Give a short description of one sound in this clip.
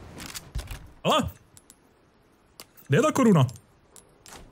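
Game menu sounds chime as items are selected.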